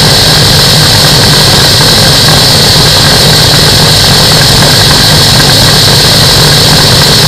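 A microlight engine drones loudly and steadily.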